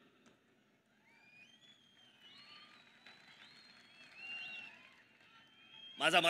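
A crowd whistles and cheers.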